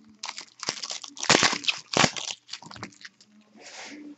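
Foil wrapping crinkles and tears as a pack is opened.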